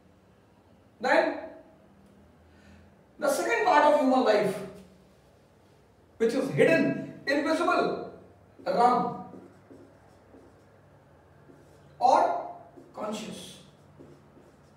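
A man speaks calmly in short bursts, close by.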